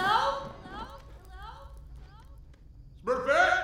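A young woman calls out loudly, her voice echoing back as in a large cave.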